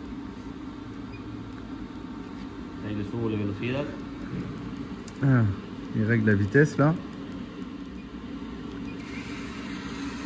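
Buttons click on a control panel.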